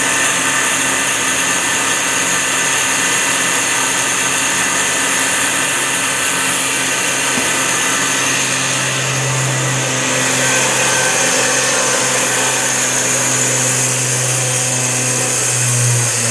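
A band saw runs with a steady whirring hum.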